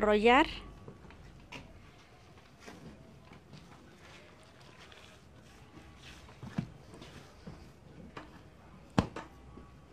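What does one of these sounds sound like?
A cloth sheet rustles as hands roll it up.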